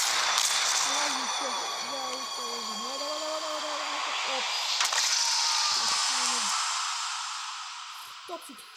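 A bullet whooshes past in slow motion.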